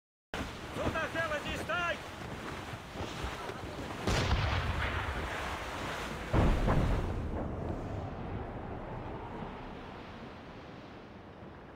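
Sea waves rush and splash against a sailing ship's hull.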